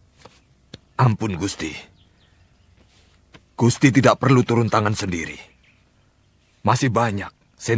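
An elderly man speaks slowly and gravely, close by.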